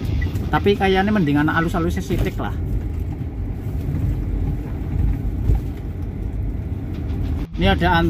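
Tyres rumble steadily on a paved road.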